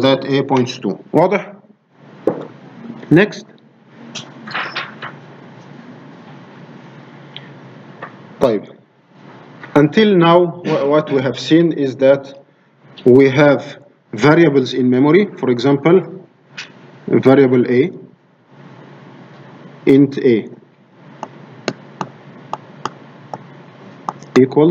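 A man speaks calmly through a microphone, as if lecturing over an online call.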